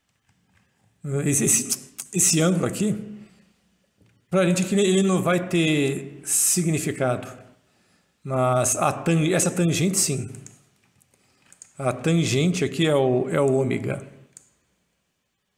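A middle-aged man talks calmly and close into a microphone.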